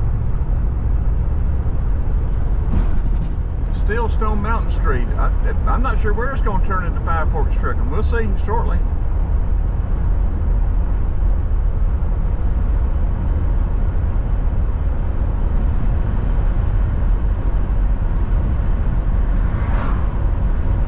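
A car drives steadily along a road with a low rumble of tyres and engine.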